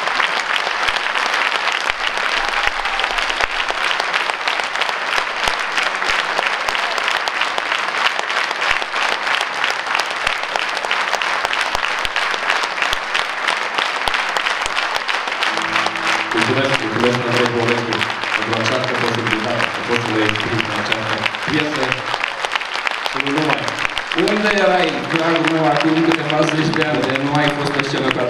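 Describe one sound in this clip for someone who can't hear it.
A large audience applauds in an echoing hall.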